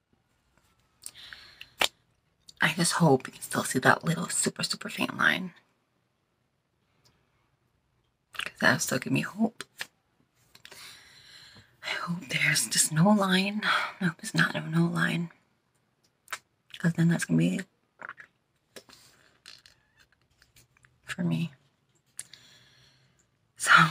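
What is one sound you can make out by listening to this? A young woman talks with animation close to a phone microphone, in bursts with pauses.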